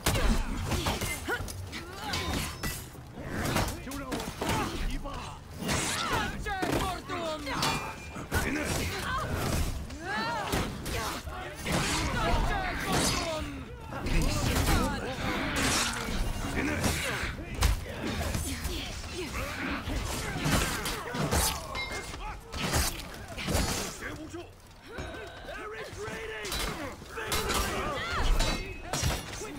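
Swords clash and clang in a large melee.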